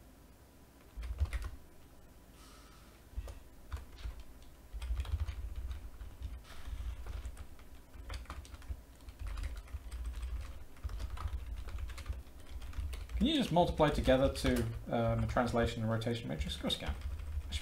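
Keyboard keys clatter as someone types.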